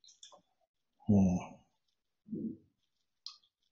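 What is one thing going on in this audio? An elderly man speaks briefly over an online call.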